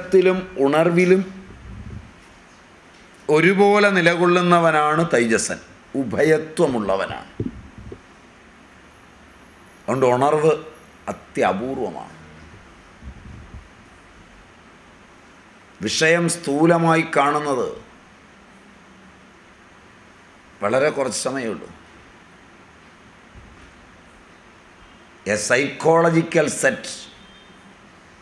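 An elderly man speaks calmly into a microphone in short phrases with long pauses.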